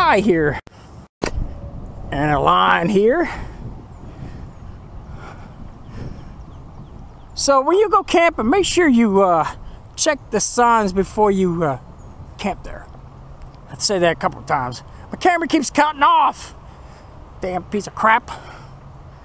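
A man speaks close by, calmly and with pauses.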